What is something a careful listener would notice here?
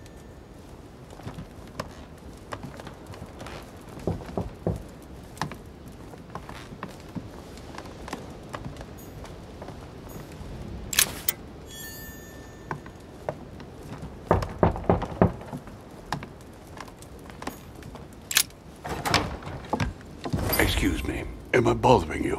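Footsteps walk steadily across a wooden floor.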